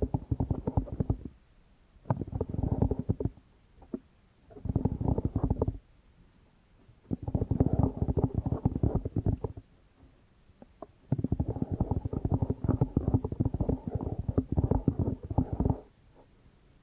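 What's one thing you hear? Fingertips scratch and rub on foam microphone covers very close up, in bursts.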